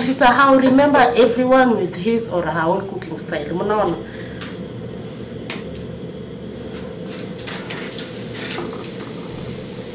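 Onions sizzle softly in a hot pot.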